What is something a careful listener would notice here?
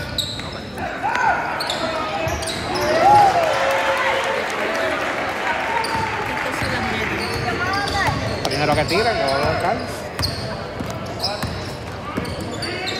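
Sneakers squeak sharply on a gym floor, echoing in a large hall.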